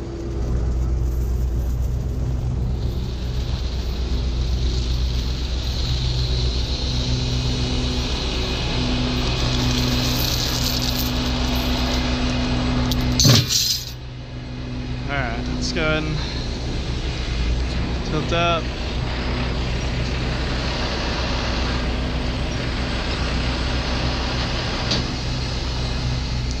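A large diesel engine idles with a steady low rumble.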